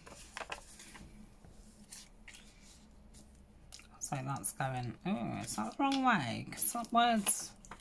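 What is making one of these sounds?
Paper rustles and crinkles as it is pressed and handled.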